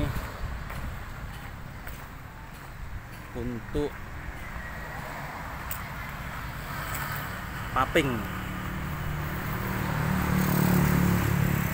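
Motorbikes pass by on a nearby road.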